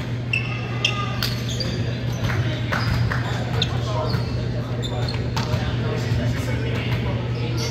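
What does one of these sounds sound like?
Shoes squeak on a hard floor in a large echoing hall.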